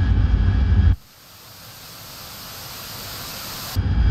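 A missile rushes through the air with a rising hiss.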